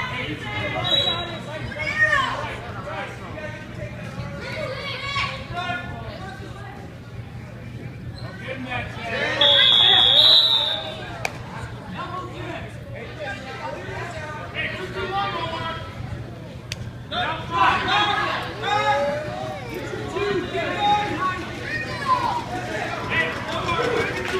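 A crowd of spectators shouts and cheers nearby in an echoing gym.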